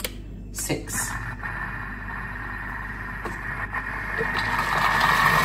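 A kitchen machine's motor whirs steadily and grows louder.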